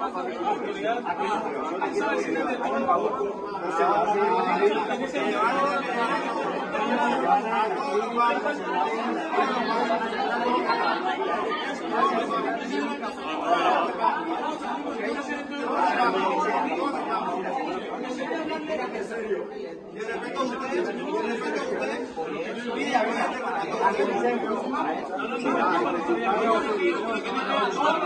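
A crowd of men argue loudly and talk over one another close by.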